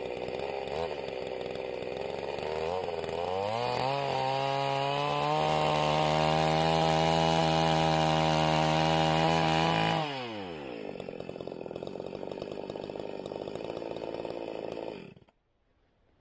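A chainsaw idles, then revs loudly and drops back to idle.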